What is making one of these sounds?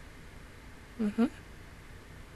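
A young woman speaks briefly into a close microphone.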